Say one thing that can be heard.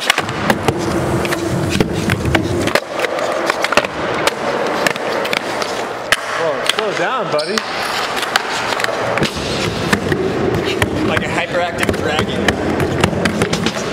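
A skateboard clacks and snaps against the floor and a wooden ramp.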